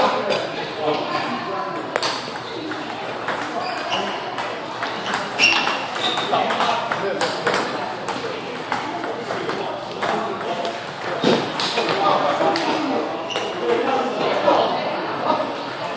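A ping-pong ball clicks back and forth on paddles and a table in a quick rally.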